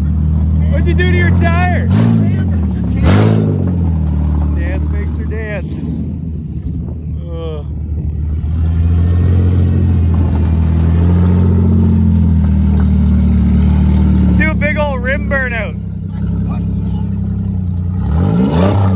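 Tyres spin and churn through mud.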